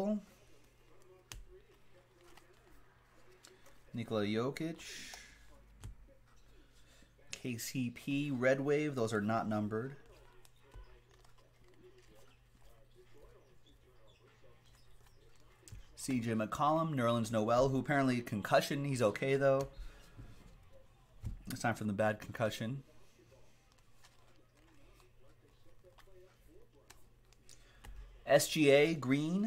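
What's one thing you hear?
Trading cards slide and flick against each other as they are shuffled by hand.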